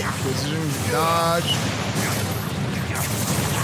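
A sword clashes against a huge creature.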